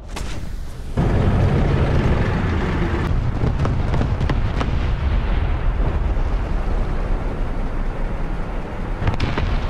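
A tank engine rumbles loudly.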